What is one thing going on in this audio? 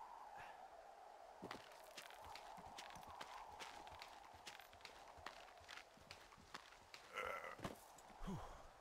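Footsteps crunch and scrape on loose rocks.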